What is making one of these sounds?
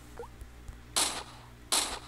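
A pistol fires a single sharp shot.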